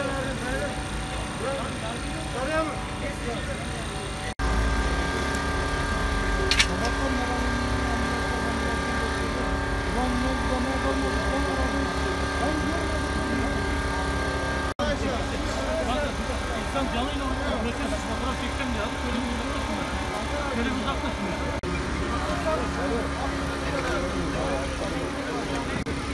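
Several men talk and call out to one another outdoors.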